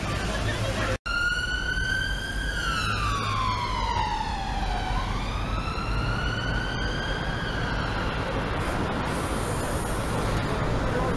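Traffic rumbles along a busy city street.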